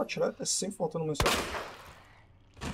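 A handgun fires a shot.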